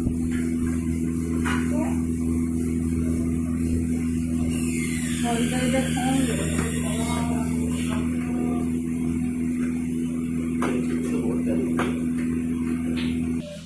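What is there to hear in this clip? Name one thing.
A screwdriver turns a screw with faint creaks and clicks.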